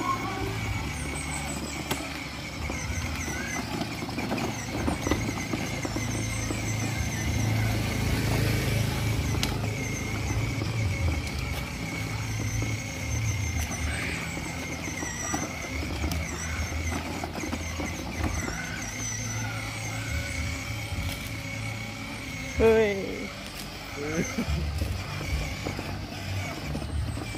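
A small electric toy car hums as it rolls slowly over rough concrete.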